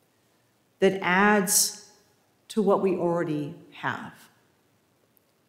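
A middle-aged woman speaks expressively into a microphone.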